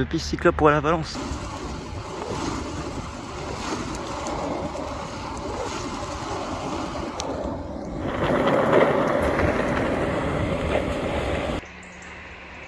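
Skateboard wheels rumble steadily on rough asphalt.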